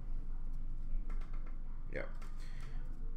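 Stiff cards rustle and tap softly in a hand.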